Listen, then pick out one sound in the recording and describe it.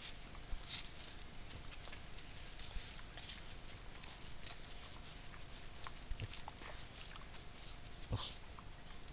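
Wild pigs root and rustle through dry leaves on the forest floor.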